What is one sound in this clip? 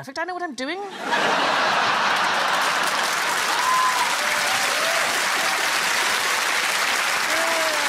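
A large audience claps and cheers loudly.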